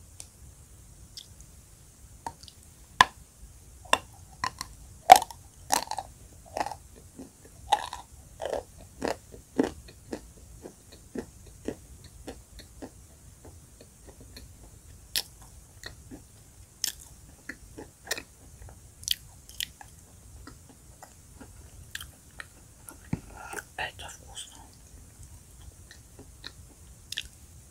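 A woman bites into chalk with sharp crunches close to a microphone.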